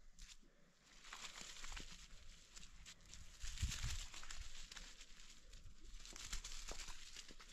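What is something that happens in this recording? Footsteps crunch on dry, loose dirt.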